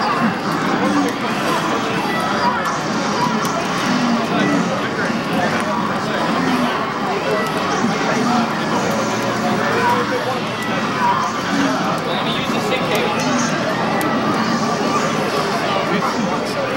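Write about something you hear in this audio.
Lightsabers hum and clash in a video game played through a television speaker.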